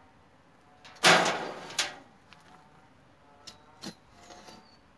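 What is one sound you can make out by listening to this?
A metal bulb planter thuds and scrapes into the soil.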